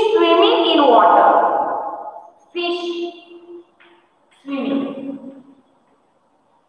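A woman speaks clearly and slowly, as if teaching, close by.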